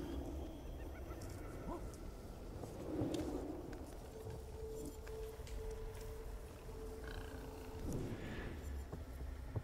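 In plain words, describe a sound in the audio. Leaves and grass rustle as someone crawls through undergrowth.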